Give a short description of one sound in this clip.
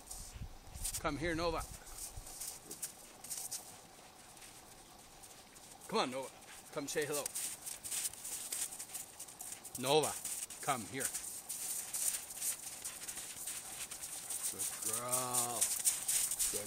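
Dogs whine and yelp in short, high cries.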